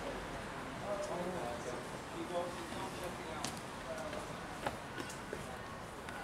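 Footsteps tap on stone steps nearby.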